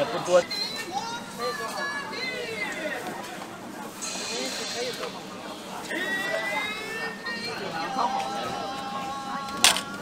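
Broth splashes as it is ladled into bowls.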